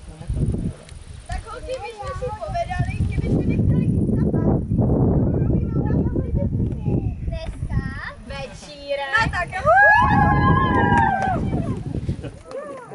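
Young girls sing and shout with excitement.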